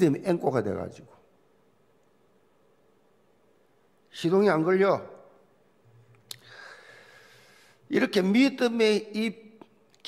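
An elderly man speaks with emphasis through a microphone in a large hall, pausing between phrases.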